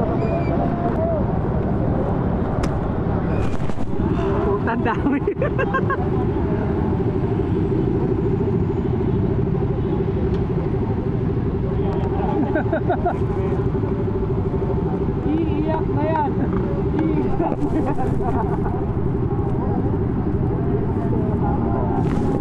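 Many motorcycle engines idle with a steady rumble.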